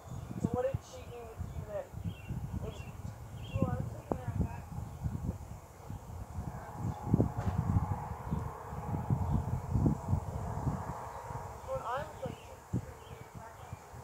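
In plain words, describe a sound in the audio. Wind buffets and rumbles, strongest early on.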